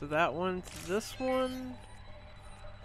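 A bright electronic chime rings as a lock opens.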